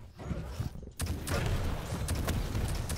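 Gunfire bursts out in rapid shots.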